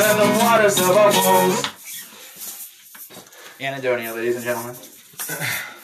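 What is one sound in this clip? A man sings into a microphone in long held notes.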